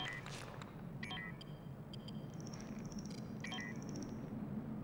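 A device beeps.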